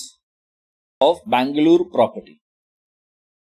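A man speaks calmly and briefly into a close microphone.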